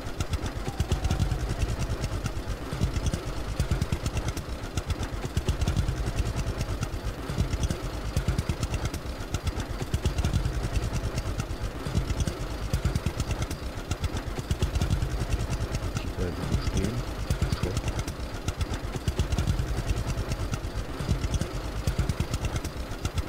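A tractor engine chugs steadily at low speed.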